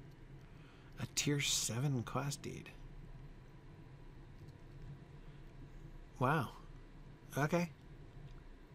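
A middle-aged man speaks briefly and calmly into a microphone, with pauses.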